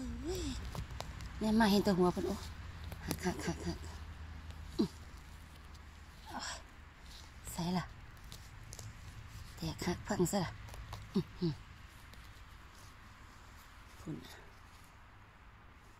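A gloved hand rustles and scrapes through soil and dry needles close by.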